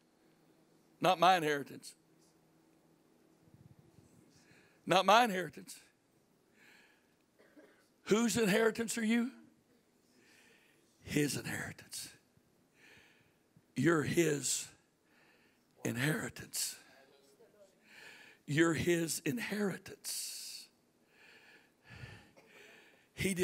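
A man speaks with animation through a microphone in a large room, in bursts with pauses.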